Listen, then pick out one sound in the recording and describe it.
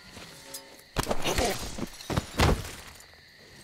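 Heavy blows and a scuffle burst out loudly.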